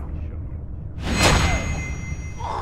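A blade swishes and stabs with a sharp thud.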